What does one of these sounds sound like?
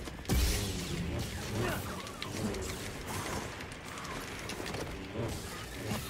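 Creatures snarl and shriek.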